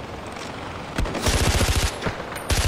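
A pistol fires a rapid burst of shots.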